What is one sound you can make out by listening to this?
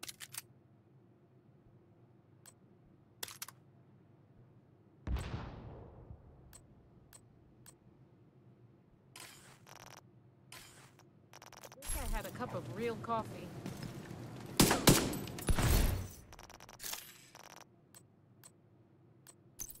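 Short interface clicks tick now and then.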